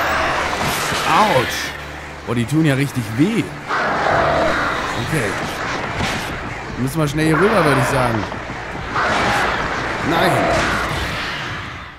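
Crows screech and caw harshly.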